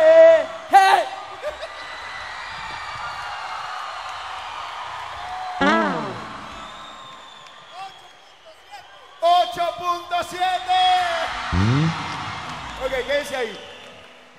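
People clap and cheer.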